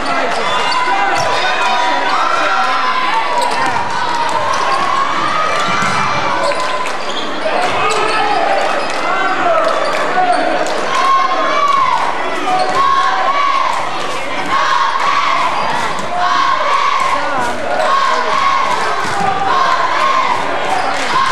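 A crowd murmurs in a large echoing gym.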